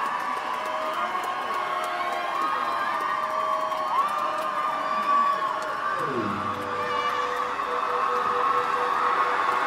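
A band plays music loudly through loudspeakers.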